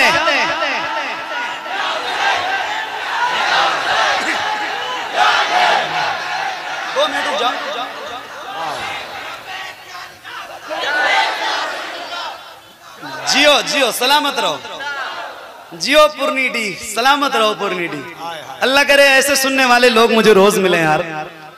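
A young man sings and recites with passion through a loudspeaker, his voice echoing.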